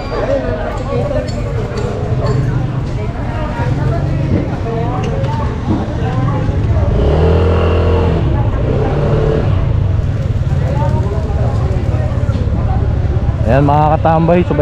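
A motorcycle engine idles and runs with a low steady hum.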